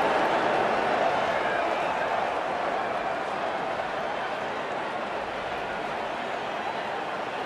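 A large stadium crowd cheers and murmurs steadily, slowly growing quieter.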